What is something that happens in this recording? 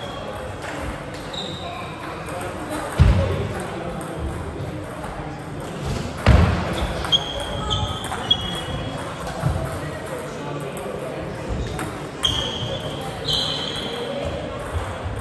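A table tennis ball clicks back and forth across a table.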